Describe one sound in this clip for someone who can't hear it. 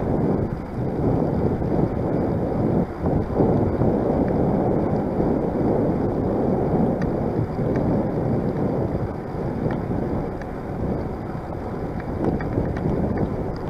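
Bicycle tyres roll over a paved path.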